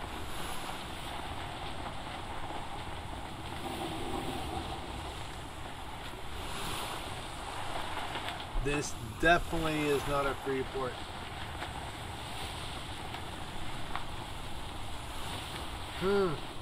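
Rough waves churn and splash steadily.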